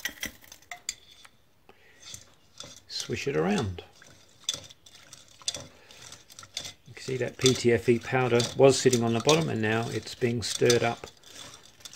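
Liquid sloshes in a pot as a chain is stirred.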